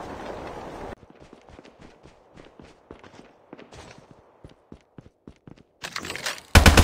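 Footsteps patter quickly across the ground and floors.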